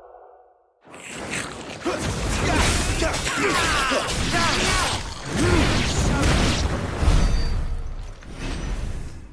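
Swords clash and magic bursts crackle loudly in a fight.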